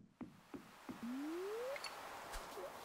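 A fishing line swishes out with a short rising whoosh.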